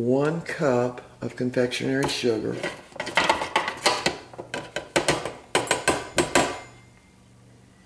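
A metal cup knocks against a plastic bowl.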